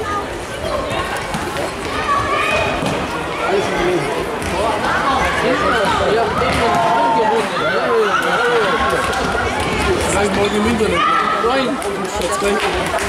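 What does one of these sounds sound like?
Young boys shout to each other in a large echoing hall.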